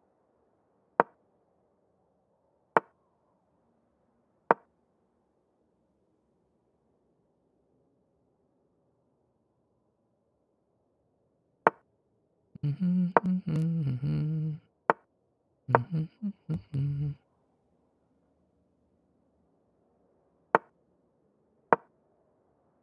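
Short wooden clicks sound as chess moves are played.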